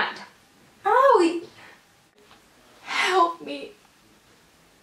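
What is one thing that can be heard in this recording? A young woman exclaims loudly and excitedly, close by.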